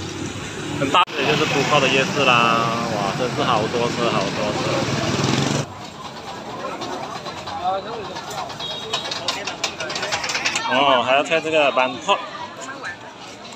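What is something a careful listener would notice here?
A crowd of people chatters in a busy outdoor street.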